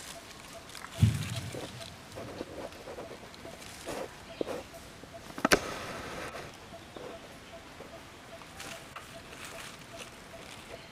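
A monkey's feet rustle through dry leaves.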